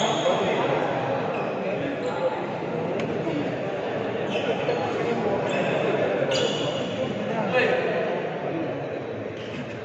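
Shoes squeak on a wooden court.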